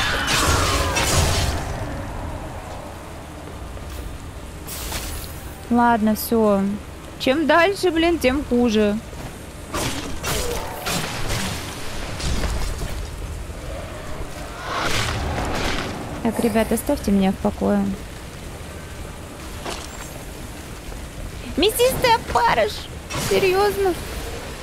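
Swords clash and strike in quick blows.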